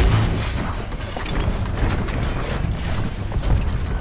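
Large metal machines clank and thud with heavy impacts.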